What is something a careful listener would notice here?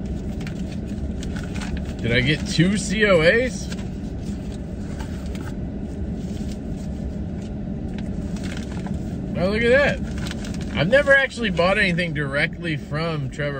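Paper rustles and crinkles as a young man handles it.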